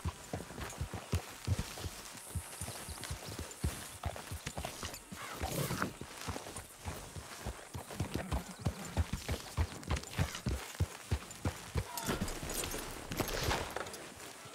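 Horse hooves clop steadily on a dirt track.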